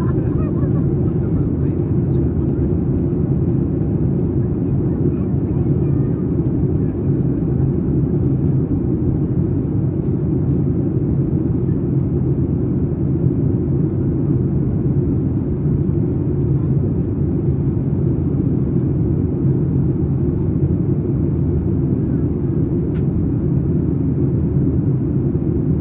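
Jet engines roar with a steady, deep drone, heard from inside the cabin.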